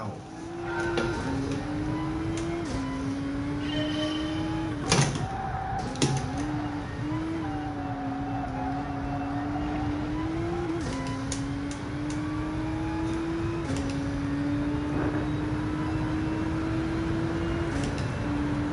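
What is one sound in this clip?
A racing car engine revs hard and climbs through the gears.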